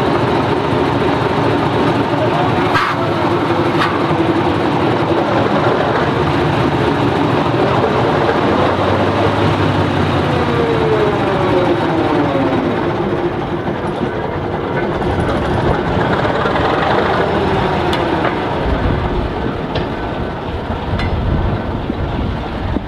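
A small rail motor car's engine runs loudly, nearby.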